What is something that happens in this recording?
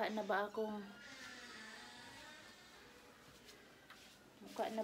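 Fabric rustles as a scarf is adjusted.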